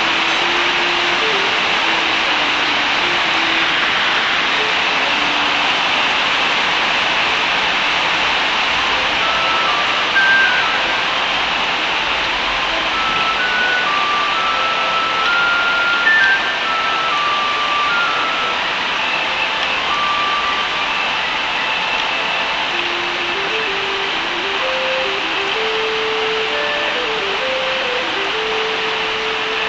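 Light game music plays a simple, gentle melody.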